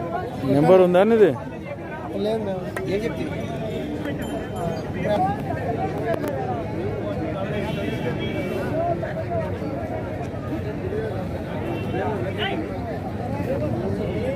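A crowd murmurs in the distance.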